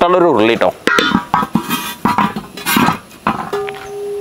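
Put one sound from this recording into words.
A large metal pan clanks and rings as it is set on a stand.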